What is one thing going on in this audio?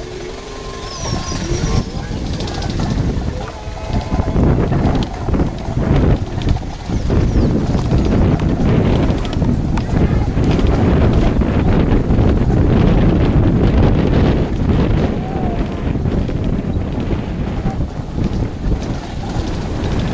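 Wind buffets loudly past an open vehicle window, growing stronger.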